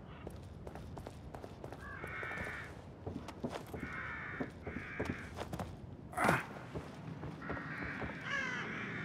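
Footsteps scuff and thud on a hard, debris-strewn floor.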